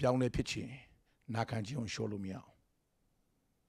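A middle-aged man speaks forcefully into a microphone.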